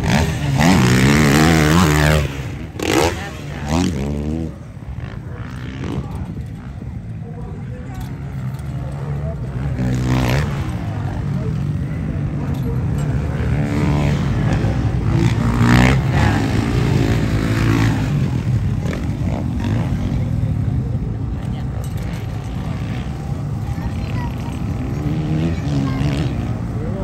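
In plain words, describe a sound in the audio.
Motocross bike engines rev and whine loudly in the open air.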